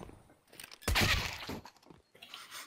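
A silenced pistol fires a shot.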